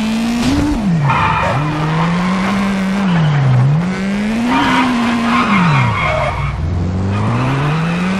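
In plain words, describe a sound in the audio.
Tyres screech as a car skids through corners.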